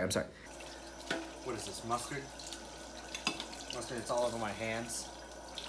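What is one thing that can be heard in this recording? Dishes clatter in a sink.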